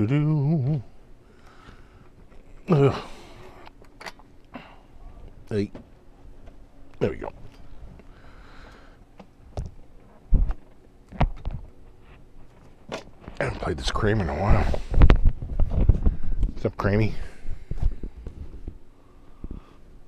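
A middle-aged man talks calmly into a close microphone.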